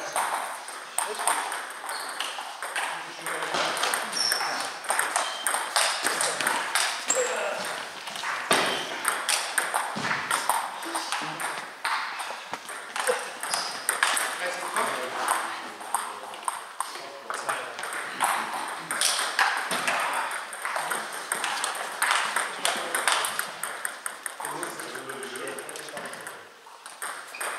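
A table tennis ball clicks off bats and bounces on the table in a large echoing hall.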